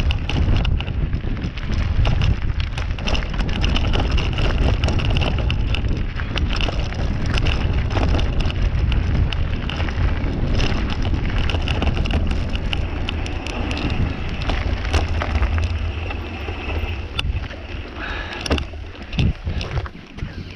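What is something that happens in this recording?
Wind buffets loudly against the microphone.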